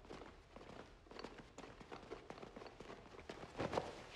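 Footsteps tread slowly across a hard floor in a large echoing hall.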